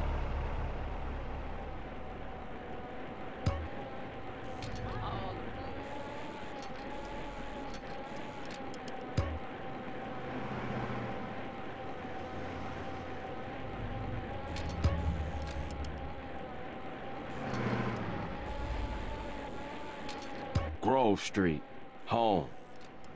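A bicycle rolls along a paved road.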